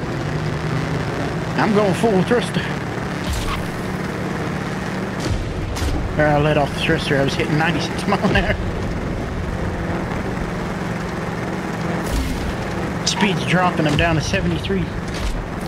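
A buggy engine hums and revs steadily.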